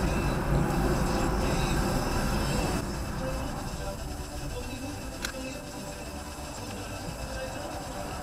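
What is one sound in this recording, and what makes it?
A car's engine and tyres rumble steadily on the road, growing quieter as the car slows.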